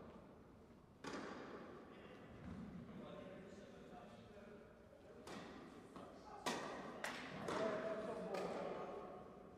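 A tennis ball is struck back and forth with sharp pops in an echoing hall.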